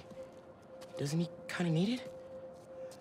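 A second young man answers calmly through a microphone.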